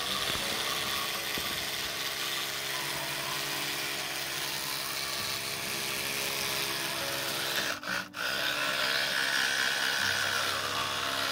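An electric toothbrush buzzes steadily against teeth close by.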